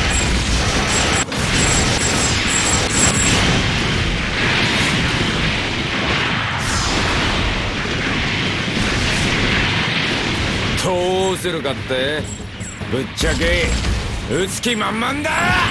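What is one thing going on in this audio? Laser beams zap and hum.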